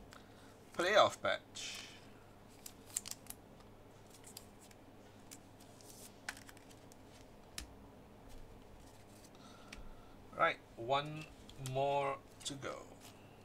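Plastic card sleeves rustle and crinkle in hands.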